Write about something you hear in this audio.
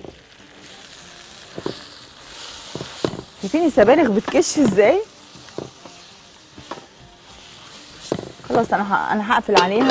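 A spatula scrapes and stirs in a pan.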